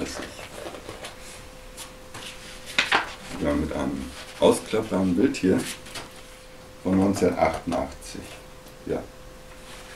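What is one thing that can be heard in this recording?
Pages of a book rustle as they are turned.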